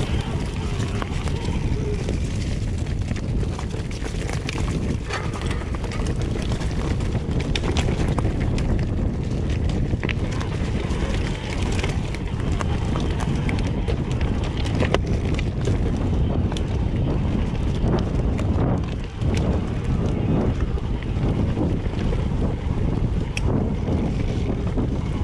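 Wind rushes loudly over a microphone while riding outdoors.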